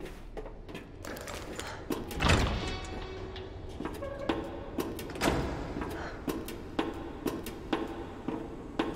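Footsteps clang on a metal grate walkway.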